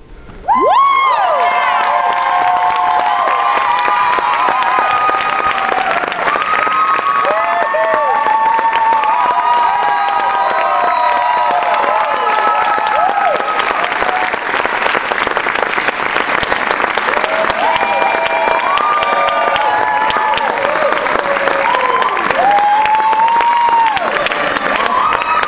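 A crowd claps rapidly.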